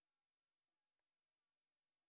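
A baseball smacks into a catcher's mitt.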